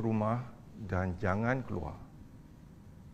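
A middle-aged man speaks clearly into a microphone.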